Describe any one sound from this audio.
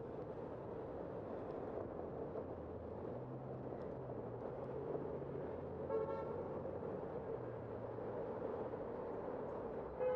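A car engine hums steadily in slow traffic.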